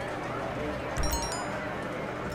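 A bright chime rings out once.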